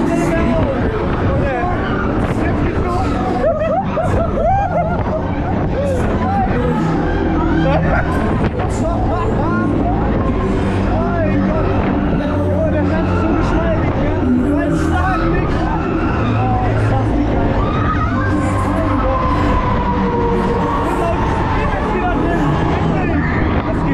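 A fairground ride whirls and rumbles loudly nearby.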